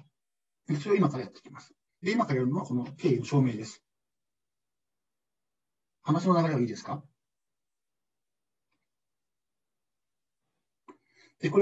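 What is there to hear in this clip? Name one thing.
A man speaks calmly into a microphone in short phrases.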